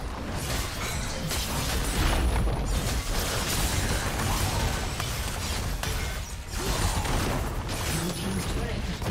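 Video game spell effects crackle and boom during a fast fight.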